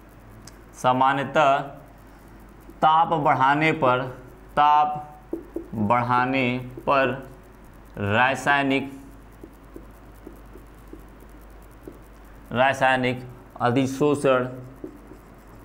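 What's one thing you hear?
A young man speaks clearly and steadily, as if teaching, close by.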